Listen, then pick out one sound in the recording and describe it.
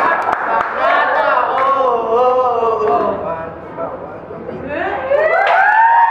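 A group of young teenagers sings together up close.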